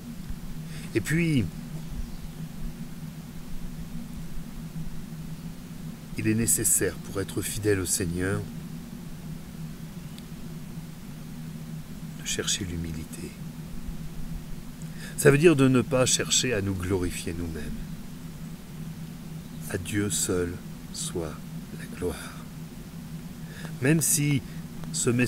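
A middle-aged man speaks calmly in short bursts into a nearby microphone, as on an online call, with pauses between.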